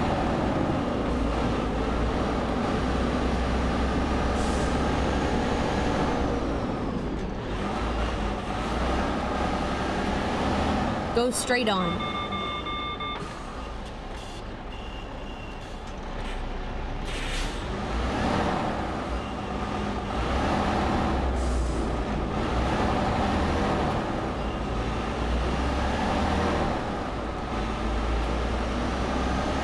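A truck engine hums and rumbles steadily.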